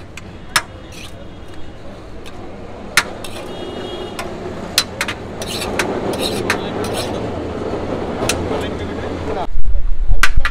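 Cooked rice rustles as a hand scoops it from a large pot.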